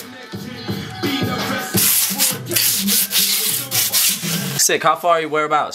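Hands rub and scrape across a skateboard's rough grip tape.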